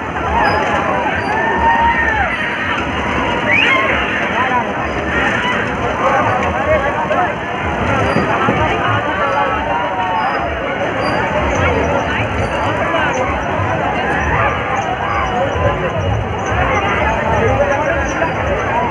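A large crowd chatters loudly all around, close by.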